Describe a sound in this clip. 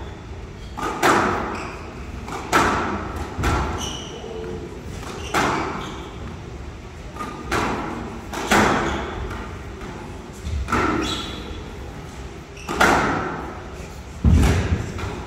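A squash ball smacks hard against walls, ringing in an echoing court.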